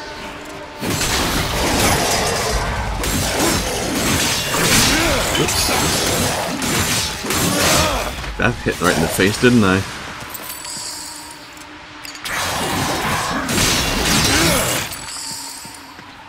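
Weapons clash and slash with loud impacts and shattering ice.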